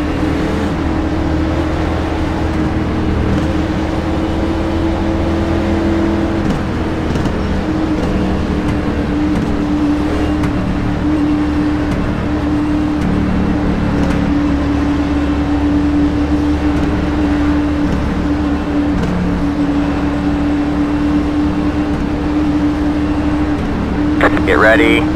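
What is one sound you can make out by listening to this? A race car engine drones steadily at an even pitch.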